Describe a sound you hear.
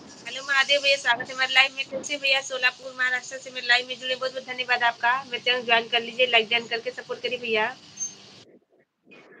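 A woman sings melodiously through an online call.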